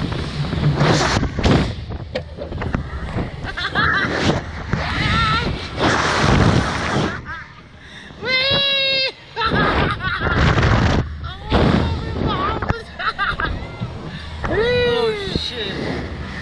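A man laughs loudly close by.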